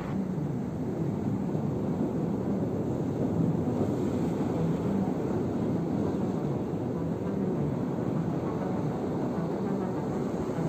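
Waves wash and roll against rocks close by.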